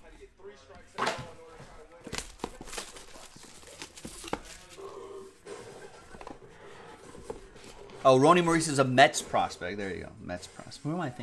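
A cardboard box knocks and scrapes as hands handle it.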